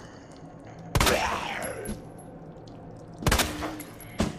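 A pistol fires a few sharp shots.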